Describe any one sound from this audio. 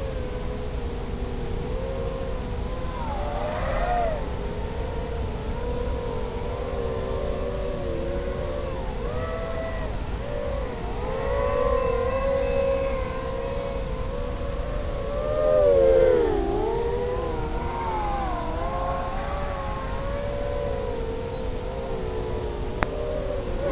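A small drone's motors whine steadily, rising and falling in pitch as it races along.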